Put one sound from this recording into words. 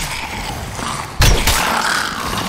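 A weapon strikes a skeleton with a heavy thud.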